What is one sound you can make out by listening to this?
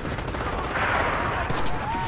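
A tank engine rumbles nearby.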